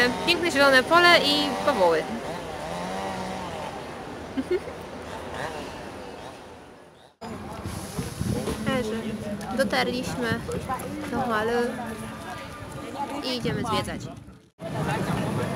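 A young woman talks cheerfully close by.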